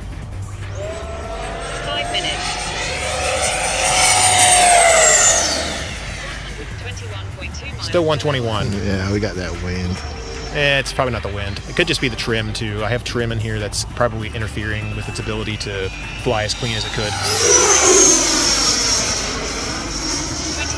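A small jet engine whines loudly as it flies past, its pitch sweeping down as it goes.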